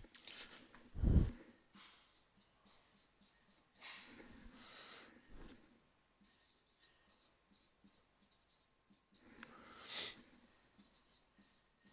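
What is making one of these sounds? A marker squeaks and scratches on a glass board.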